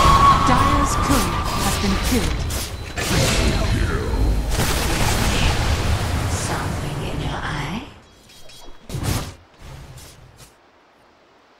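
Magic blasts and weapon clashes ring out in a fierce fight.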